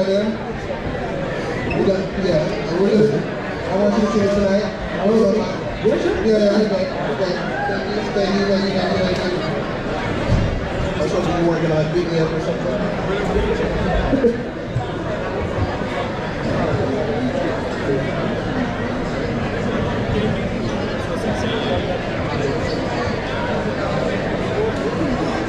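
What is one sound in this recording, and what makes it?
A band plays music nearby.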